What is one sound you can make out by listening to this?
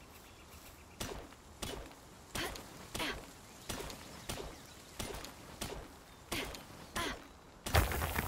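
A pickaxe strikes wood in a quick series of sharp knocks.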